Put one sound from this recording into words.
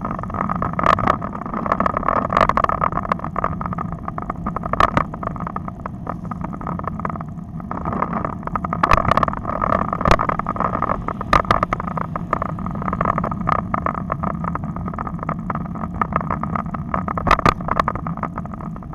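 Wind rushes over a microphone on a moving road bike.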